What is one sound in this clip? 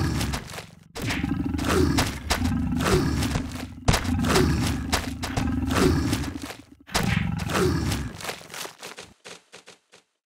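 A lion growls and snarls loudly.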